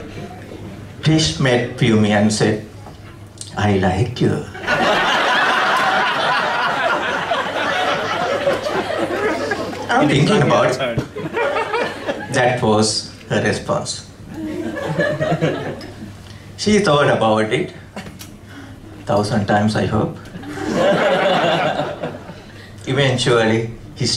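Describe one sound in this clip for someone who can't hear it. A man speaks warmly through a microphone and loudspeaker, pausing between phrases.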